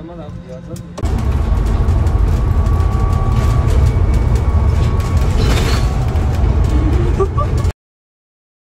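A bus engine rumbles loudly.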